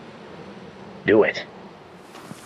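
A second man speaks calmly close by.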